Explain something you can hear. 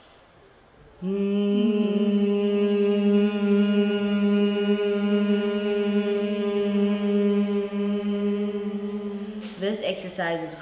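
Several young women hum a long, steady note together.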